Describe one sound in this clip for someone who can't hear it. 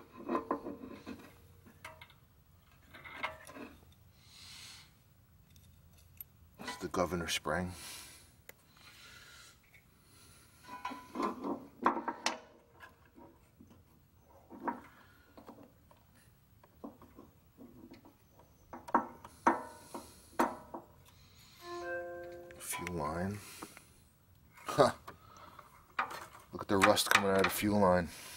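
Small metal parts click and clank against an engine.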